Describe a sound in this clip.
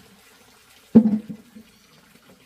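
A plastic bucket thumps down onto a wooden floor.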